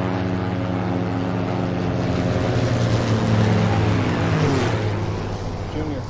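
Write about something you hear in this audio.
Propeller engines drone loudly as a plane flies close overhead, the pitch dropping as it passes.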